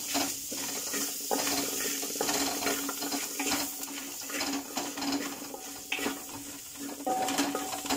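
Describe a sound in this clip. A metal spoon scrapes and taps against a pot.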